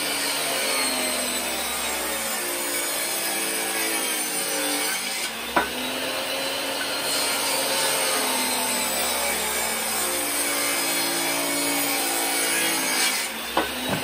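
A table saw blade cuts through wood.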